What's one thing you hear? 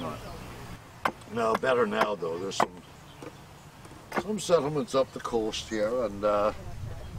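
An elderly man speaks calmly up close.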